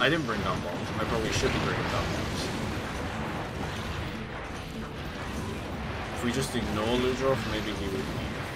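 A monster roars and growls loudly.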